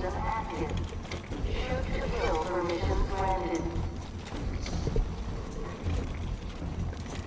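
A wheeled trolley rolls along a hard floor with a low rumble.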